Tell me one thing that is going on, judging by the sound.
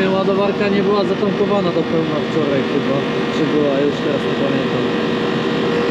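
Fuel gushes into a tank through a nozzle.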